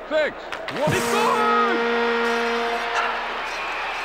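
An arena horn blares loudly.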